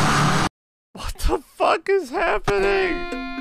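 A young woman speaks excitedly into a microphone.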